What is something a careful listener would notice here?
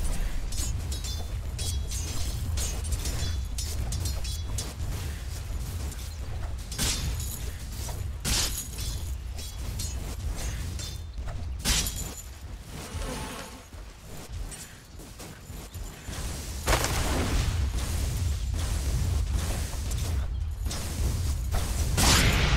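Weapons clash and strike in a game battle.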